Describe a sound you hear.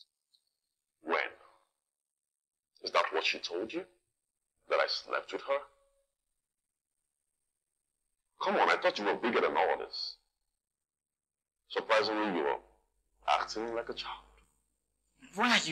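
A man speaks calmly and firmly nearby.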